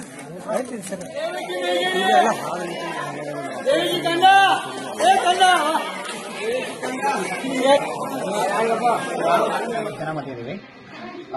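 A man speaks loudly through a microphone and loudspeaker to a crowd.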